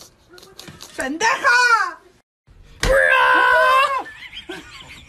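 A woman laughs loudly close by.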